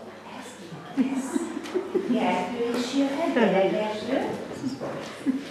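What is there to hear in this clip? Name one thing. A young girl speaks close by in a high voice.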